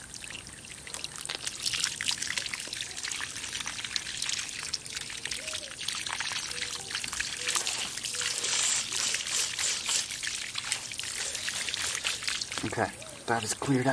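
A pressure washer sprays water hard onto gravel with a loud hiss.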